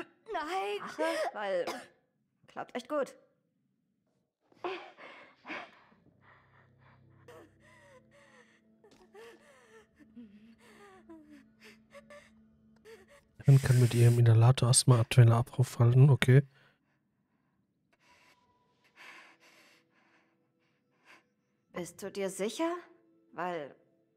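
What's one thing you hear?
A young woman speaks with worry, close by.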